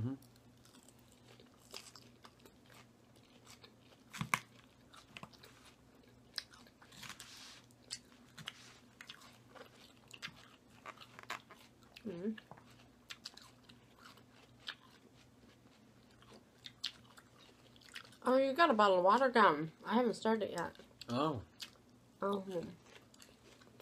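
A man chews and crunches crisp salad close up.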